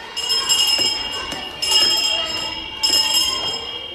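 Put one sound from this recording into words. Footsteps tap on a hard tiled floor in an echoing hallway.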